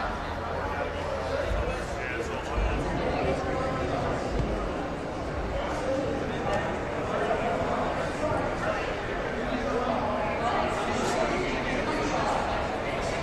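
A crowd of people chatters throughout, with voices echoing in a large hall.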